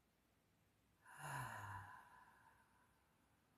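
A young woman speaks a few words softly and close by.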